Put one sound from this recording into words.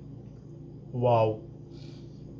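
A young man lets out a short exclamation close by.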